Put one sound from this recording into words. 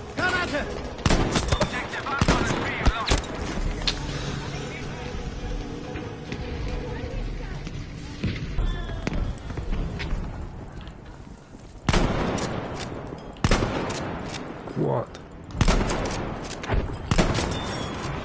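A bolt-action rifle fires single sharp shots.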